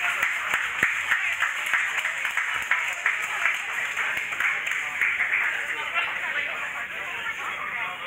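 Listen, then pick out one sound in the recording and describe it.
A live band plays loud rock music in a large, echoing hall.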